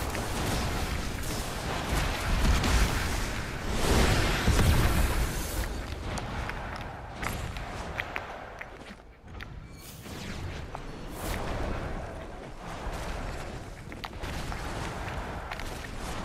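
Footsteps patter quickly over sand.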